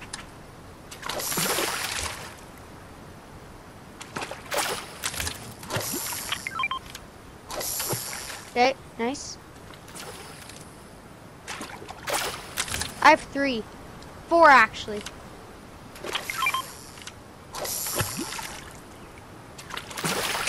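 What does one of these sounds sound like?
A lure splashes into water.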